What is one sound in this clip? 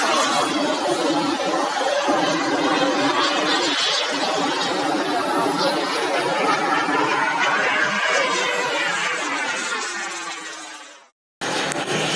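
A model jet engine roars loudly as the aircraft rolls along the ground.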